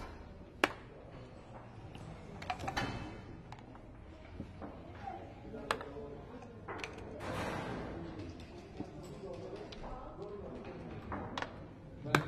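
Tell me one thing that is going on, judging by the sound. Game pieces click as they are moved on a wooden board.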